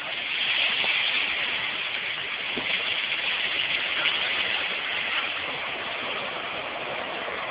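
A train rolls steadily along the rails with a loud rushing noise.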